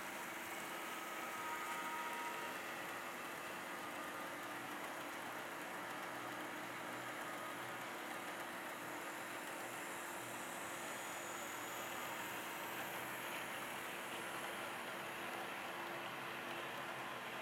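Model trains rumble and click steadily along the track.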